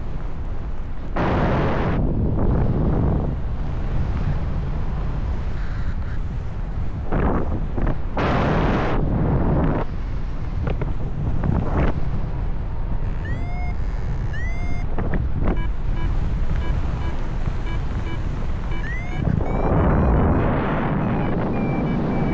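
Wind rushes and buffets loudly in gusts.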